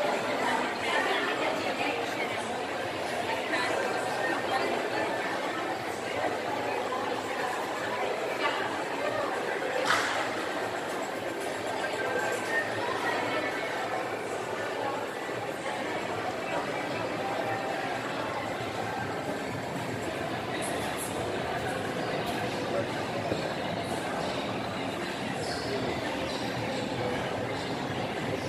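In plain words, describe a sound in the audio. A steady murmur of many distant voices echoes through a large indoor hall.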